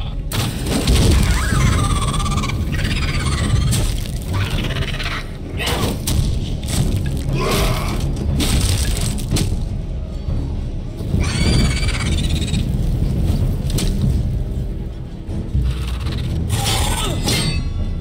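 Metal blades clash and clang in a fight.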